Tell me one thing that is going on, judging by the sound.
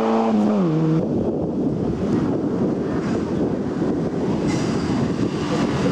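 A second rally car engine roars as it approaches.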